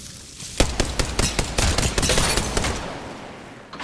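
A rapid burst of gunfire rings out.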